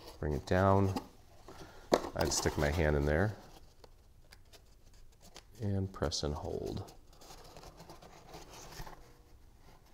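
Stiff paper rustles and crinkles as it is pressed and folded by hand.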